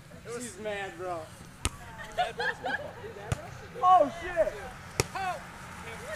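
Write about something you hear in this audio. A volleyball is struck by hand outdoors.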